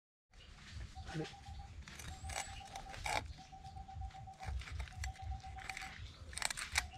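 A knife scrapes scales off a fish in short, rasping strokes.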